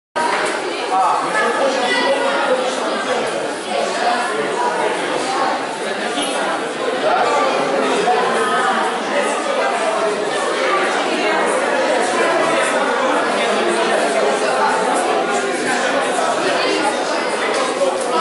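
A crowd of people chatters throughout a large echoing hall.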